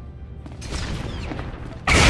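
Flames roar from an explosion.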